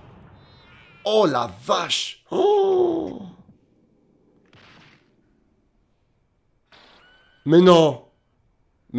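A young man exclaims with excitement close to a microphone.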